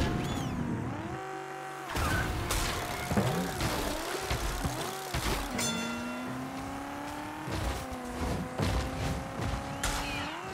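A kart engine hums and whines as it races, rising and falling in pitch.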